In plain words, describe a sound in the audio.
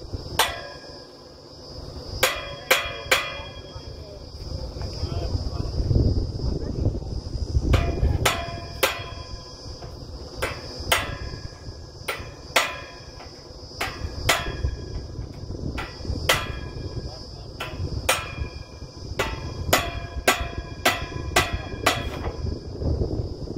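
Metal pipes clank sharply again and again.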